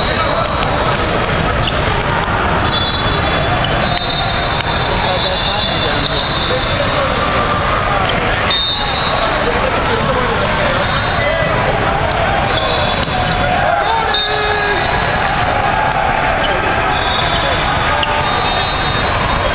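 A volleyball is struck with a thump.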